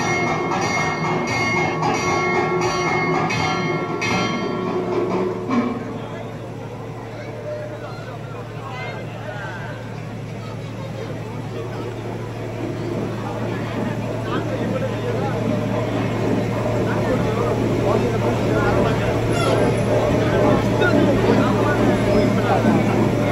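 A large crowd murmurs and chatters outdoors, growing louder over time.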